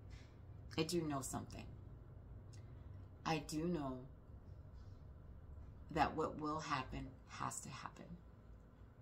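A woman speaks calmly and thoughtfully, close to a microphone.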